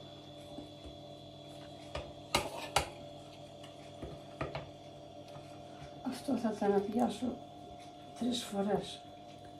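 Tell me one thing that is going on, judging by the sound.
A spoon scrapes and clinks against a bowl while stirring.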